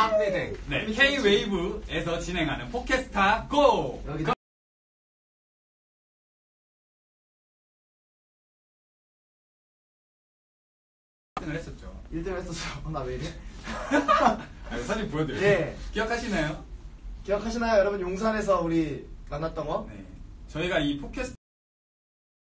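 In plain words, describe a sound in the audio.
Young men talk with animation close by.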